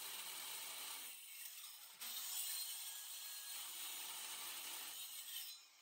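A power drill whines as it bores into steel.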